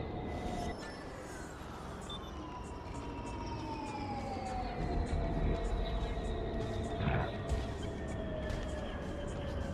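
A spaceship engine whooshes past, its pitch falling.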